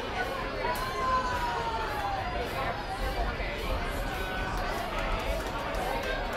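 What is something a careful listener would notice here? A band plays live music outdoors.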